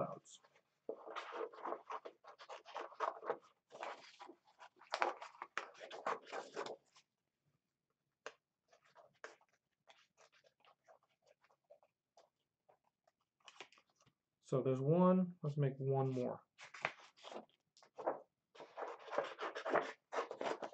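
Paper rustles as a man handles sheets.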